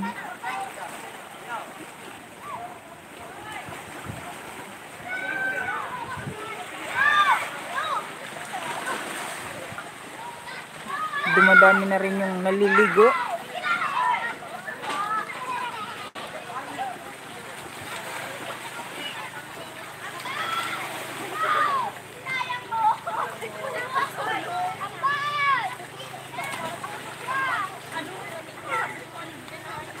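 Children and adults shout and laugh in the water nearby, outdoors.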